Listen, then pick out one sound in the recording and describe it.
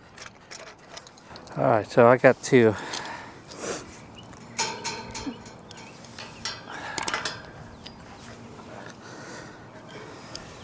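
Metal clanks faintly as a person climbs a tower.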